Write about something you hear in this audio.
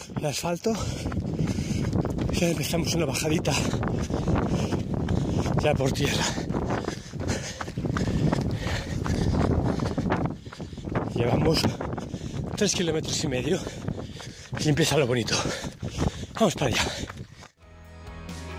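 Running footsteps crunch on a gravel trail.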